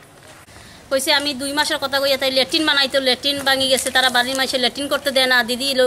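A middle-aged woman speaks with agitation close to a microphone.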